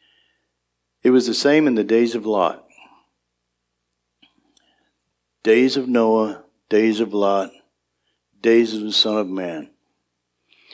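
A man speaks through a microphone in a large room, in calm phrases with pauses.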